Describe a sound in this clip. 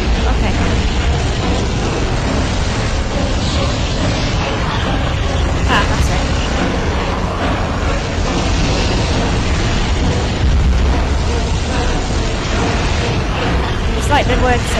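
Two magic beams crackle and roar steadily as they clash.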